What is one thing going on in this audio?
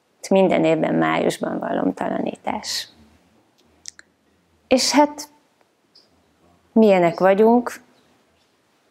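A woman speaks calmly and softly into a close microphone, with pauses.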